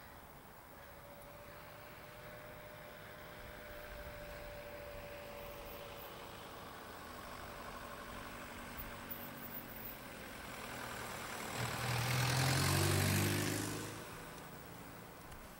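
A car drives down a hill toward the listener and passes close by, its engine rising then fading.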